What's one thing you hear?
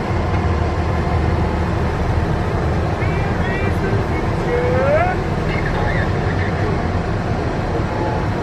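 A car engine rumbles low and steadily from inside the car.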